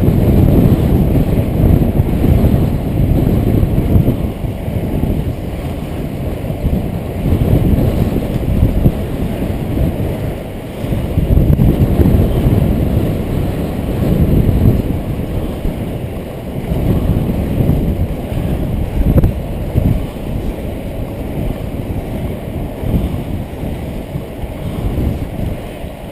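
Wind rushes against a helmet-mounted microphone.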